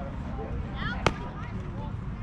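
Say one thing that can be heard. A softball smacks into a catcher's glove.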